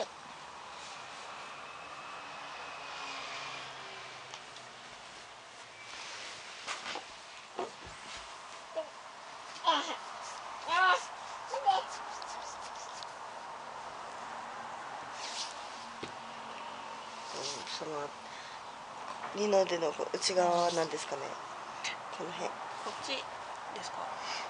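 Hands rub and knead skin softly.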